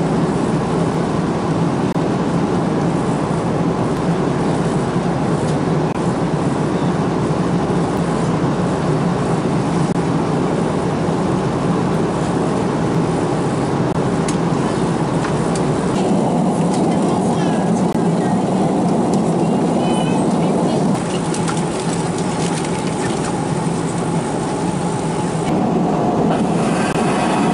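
A jet airliner's engines roar steadily inside the cabin.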